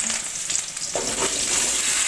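Potatoes tumble into hot oil in a pan.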